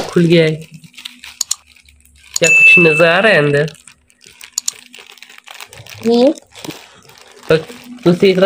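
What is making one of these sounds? A plastic mailer bag crinkles and tears as it is opened.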